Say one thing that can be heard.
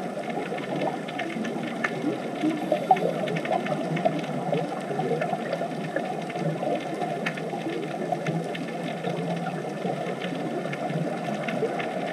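Scuba divers' breathing bubbles gurgle and rumble steadily underwater.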